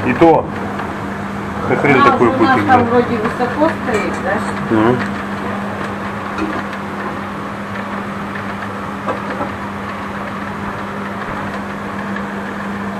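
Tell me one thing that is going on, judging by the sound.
Rain patters steadily against a window.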